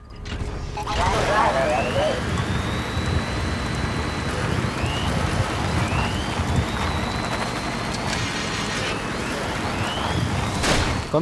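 A mechanical walker whirs and rumbles steadily as it moves along.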